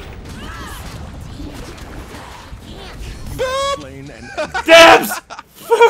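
Video game spell effects whoosh and burst in short bursts.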